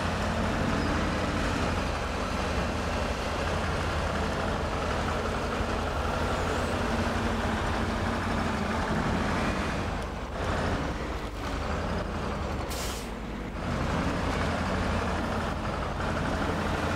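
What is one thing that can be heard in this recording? A truck engine rumbles and strains at low speed.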